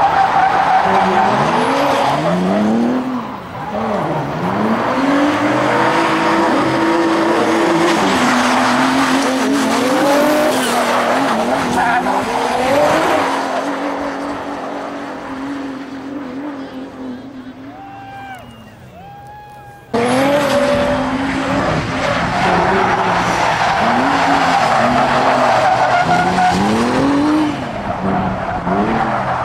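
Car engines rev hard and whine up and down.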